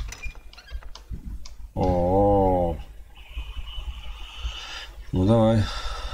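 A metal lever is pulled with a clunk.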